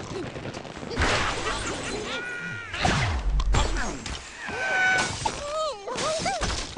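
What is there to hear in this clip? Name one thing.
Blocks crash and clatter as a structure breaks apart.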